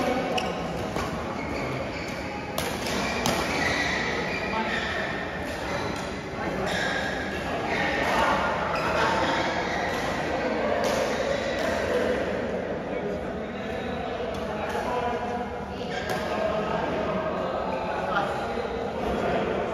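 Badminton rackets strike a shuttlecock with sharp taps.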